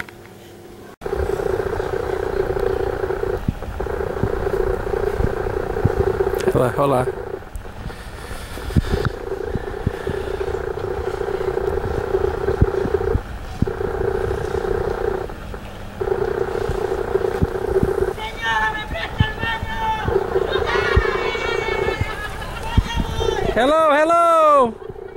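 A boat engine hums steadily across the water.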